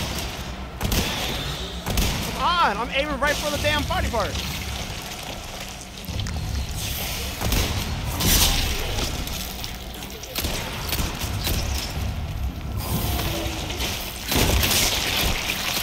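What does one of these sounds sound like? Gunshots crack loudly and echo.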